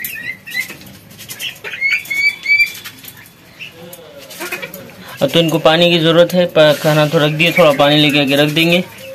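Ducklings peck and dabble at food in a metal bowl.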